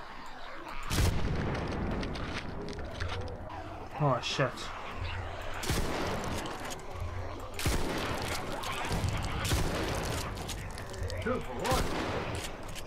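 A shotgun fires loud booming blasts.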